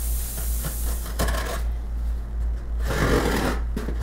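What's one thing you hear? Cardboard rustles and tears as a box is opened.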